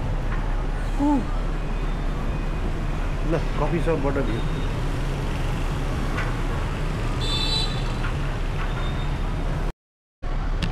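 Traffic and motorbikes hum steadily from a street below.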